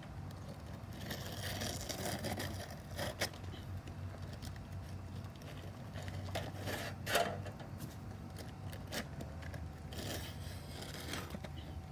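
Shingles scrape and rustle as they are slid into place.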